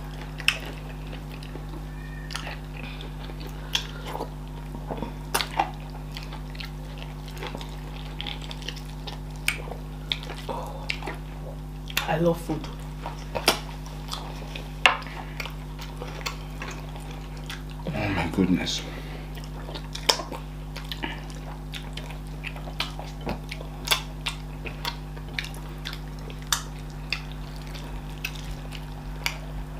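A man and a woman chew and smack their lips close to a microphone.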